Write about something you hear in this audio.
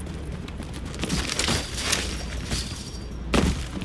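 A chain-link fence rattles as it is climbed.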